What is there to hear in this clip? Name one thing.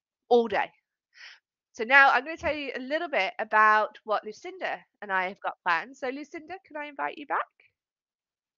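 An elderly woman speaks calmly and wryly.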